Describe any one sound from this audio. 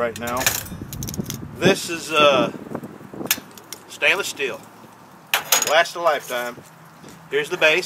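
Metal stove pieces clink together as they are lifted apart.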